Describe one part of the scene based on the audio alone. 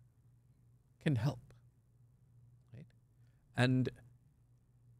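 A middle-aged man speaks calmly and slowly into a close microphone, with short pauses.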